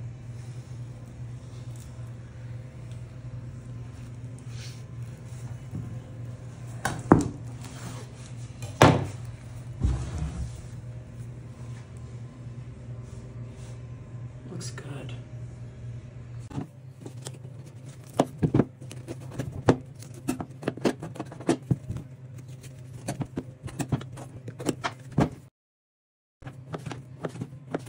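A knife cuts through meat and bone.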